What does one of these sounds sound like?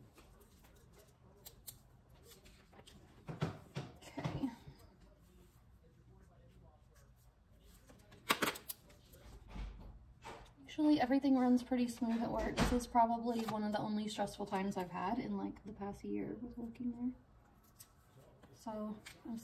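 Paper rustles and crinkles as pages are handled.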